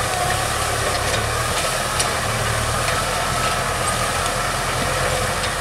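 A diesel tractor runs under load, pulling a disc harrow.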